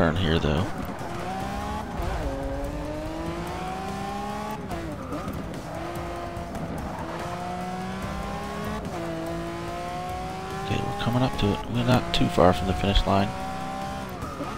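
A V12 supercar engine accelerates hard, its revs climbing and dropping at each upshift.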